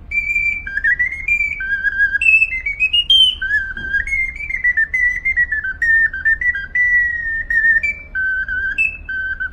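A small handheld whistle plays a high, lively melody up close.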